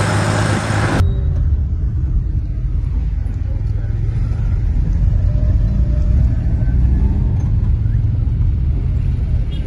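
A van's engine rumbles steadily on the move.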